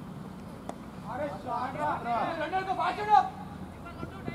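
Men shout loudly outdoors.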